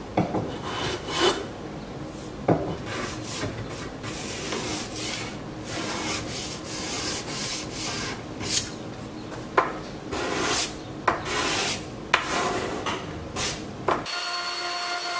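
A hand plane shaves along a cherry board in short strokes.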